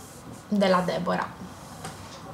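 A young woman speaks briefly, close up.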